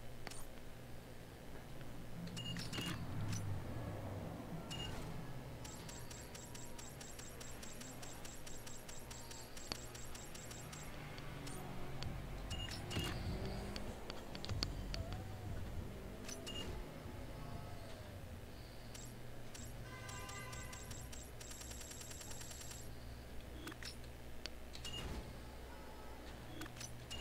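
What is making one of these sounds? Short electronic menu clicks sound as options change.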